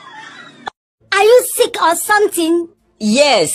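A woman asks a question with animation.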